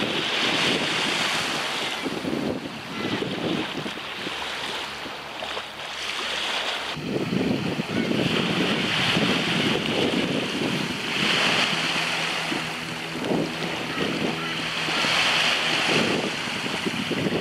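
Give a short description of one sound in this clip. Small waves lap gently at the shore.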